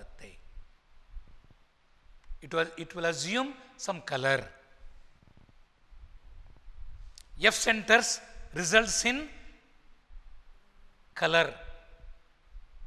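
An elderly man lectures calmly into a clip-on microphone, in short bursts with pauses.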